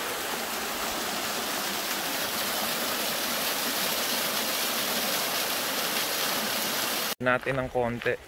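A small waterfall splashes and rushes steadily close by.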